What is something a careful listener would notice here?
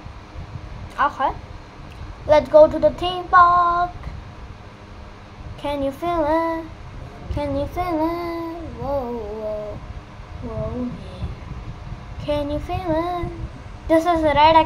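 A child talks with animation close by.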